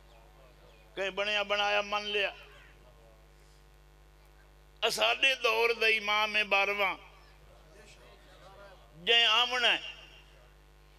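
A middle-aged man recites loudly in a chanting voice through a microphone, in bursts with pauses.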